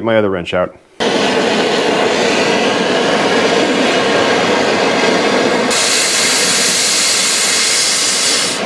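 A cutting torch roars steadily.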